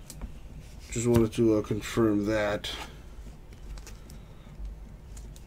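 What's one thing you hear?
A plastic card sleeve crinkles softly between fingers.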